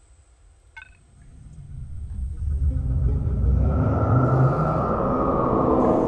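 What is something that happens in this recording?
A spaceship's jump drive hums and swells into a deep roar.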